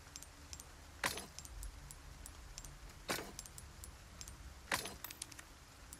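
Short menu chimes click as items are selected.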